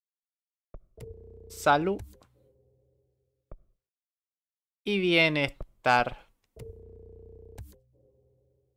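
Electronic menu tones hum and sweep in pitch.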